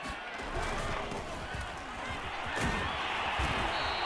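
Football players' pads clash in a tackle.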